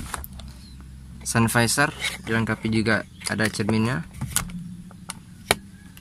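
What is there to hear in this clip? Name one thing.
A plastic flap clicks open and shut close by.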